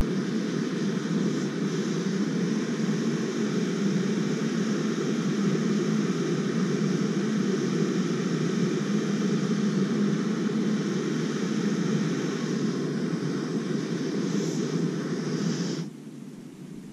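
A camp stove burner roars steadily, then cuts off.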